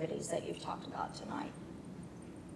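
A middle-aged woman speaks calmly into a microphone.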